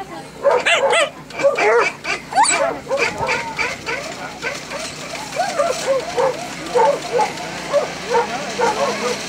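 A small dog barks and yelps close by.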